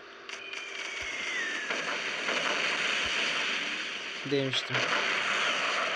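Explosions boom in quick succession.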